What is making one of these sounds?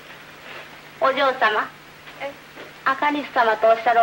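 A woman speaks calmly nearby.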